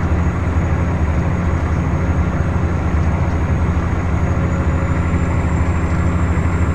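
A truck's diesel engine rumbles steadily while driving.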